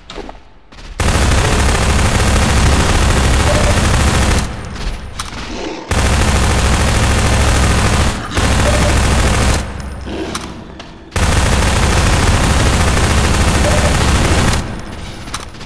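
Rapid machine-gun fire blasts loudly.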